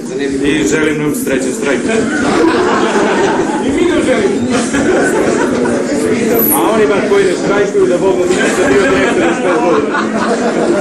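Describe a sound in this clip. Several men talk over one another loudly.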